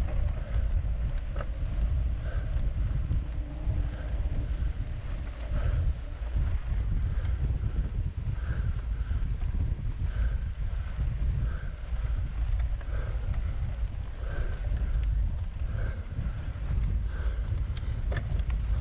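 Wind rumbles loudly across the microphone outdoors.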